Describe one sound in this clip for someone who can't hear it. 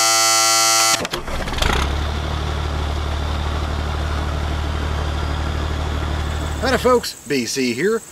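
A diesel engine rumbles at idle.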